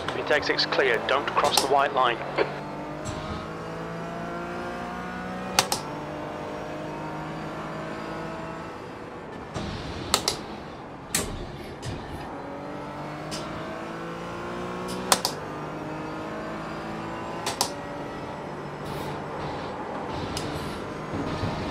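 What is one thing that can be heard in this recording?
A racing car engine revs up and down through the gears.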